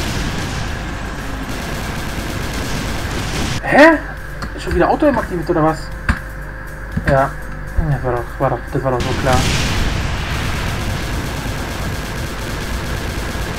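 Gunfire bursts rapidly.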